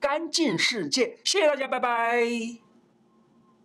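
An elderly man speaks with animation close to a microphone.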